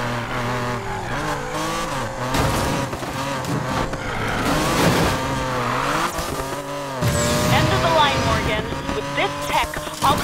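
A racing car engine roars at high revs, rising and falling as it shifts gears.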